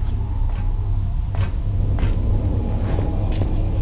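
Boots clang on the rungs of a metal ladder.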